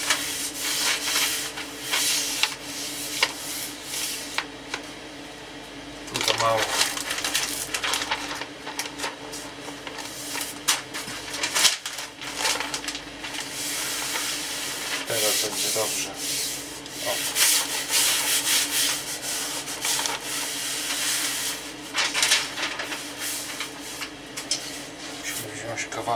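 Hands rub and brush across a thin sheet of wood.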